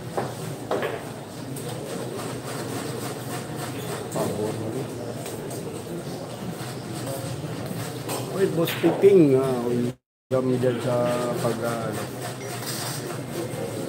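A crowd of young men murmurs and chatters nearby.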